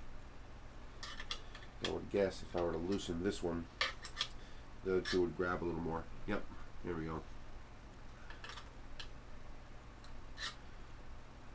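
Metal parts click and clatter as they are handled.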